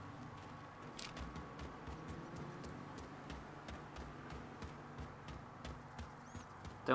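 Footsteps run quickly across grass and pavement.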